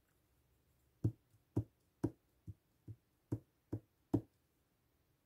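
A stamp taps repeatedly on paper.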